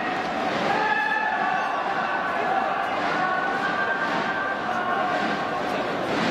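A large stadium crowd murmurs and cheers throughout.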